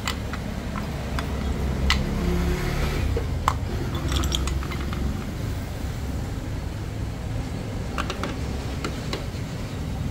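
Metal engine parts clink and clack as they are handled.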